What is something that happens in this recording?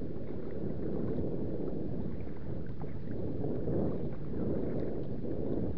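Wind rumbles across the water outdoors.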